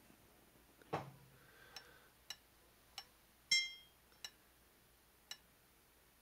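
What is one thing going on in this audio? A hammer knocks on wood in short sharp blows.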